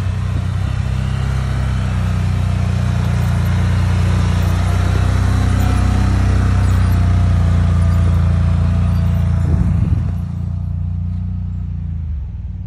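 An ATV engine hums under load.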